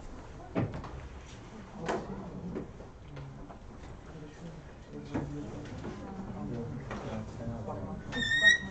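Young people murmur and talk in a room, heard faintly through a distant microphone.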